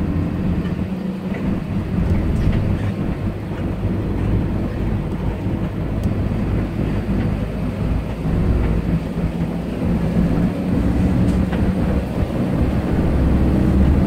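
A bus engine rumbles steadily from inside the cabin as the bus drives along.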